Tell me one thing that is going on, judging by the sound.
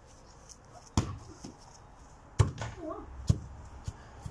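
A football thuds as it is kicked.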